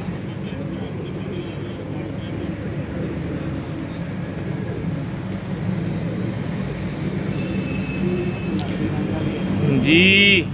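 Men murmur and talk nearby.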